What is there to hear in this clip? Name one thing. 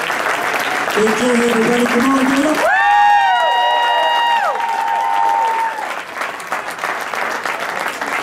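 An acoustic guitar is strummed and tuned.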